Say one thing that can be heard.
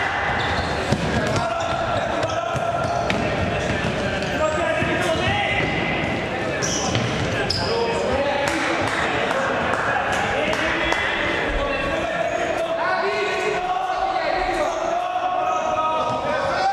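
Players shout to each other across an echoing hall.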